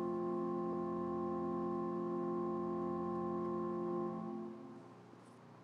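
A pipe organ holds a chord and fades out.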